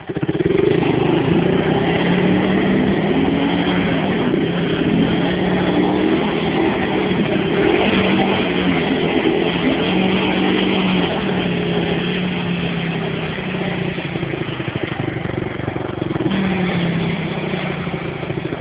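Wheels churn through mud.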